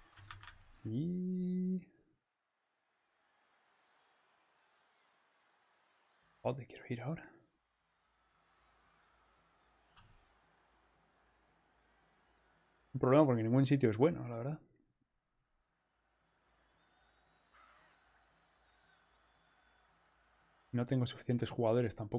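A young man speaks into a close microphone in short, animated bursts.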